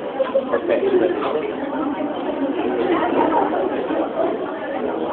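A crowd of people chatters and cheers loudly in an echoing hall.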